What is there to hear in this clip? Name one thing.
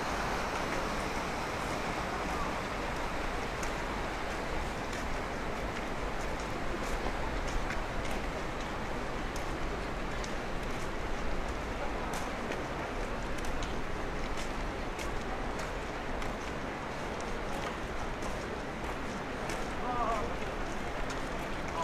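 Footsteps tap on a paved walkway.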